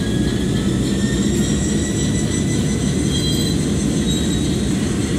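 A diesel locomotive engine rumbles deeply and steadily.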